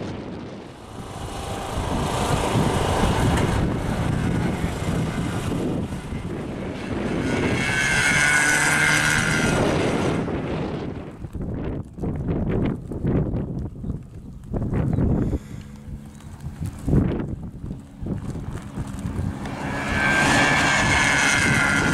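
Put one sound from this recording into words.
A car engine revs hard as a car speeds past.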